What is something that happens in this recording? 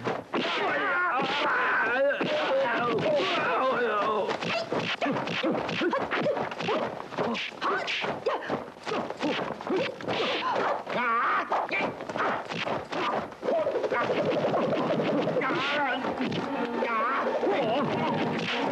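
Men shout and yell loudly as they fight.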